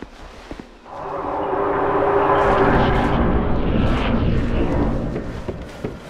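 A low rushing whoosh swells and slowly fades.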